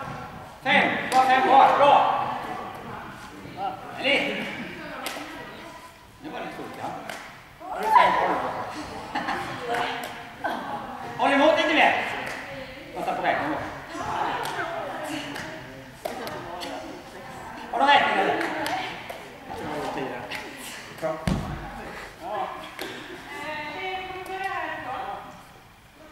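A ball slaps into hands as it is caught.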